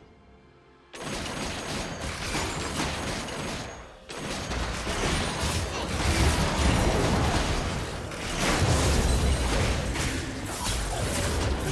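Spell blasts and weapon hits clash in a video game battle.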